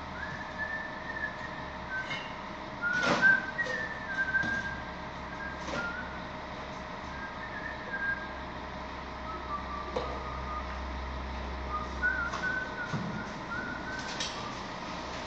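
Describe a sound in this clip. A trowel scrapes and taps against bricks and mortar.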